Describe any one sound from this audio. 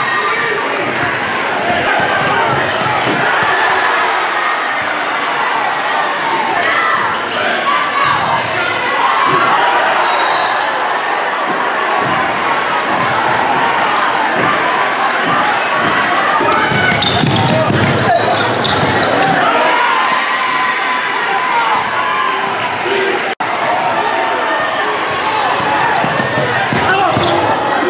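A crowd cheers loudly in a large echoing gym.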